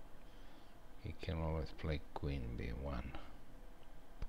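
A middle-aged man speaks calmly into a headset microphone.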